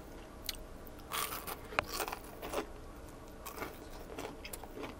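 A man chews crunchy fried food close to a microphone.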